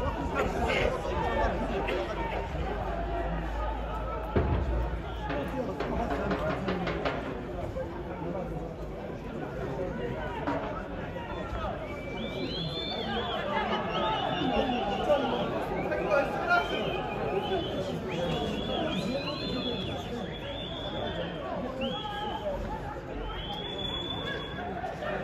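Football players shout and call to each other across an open pitch.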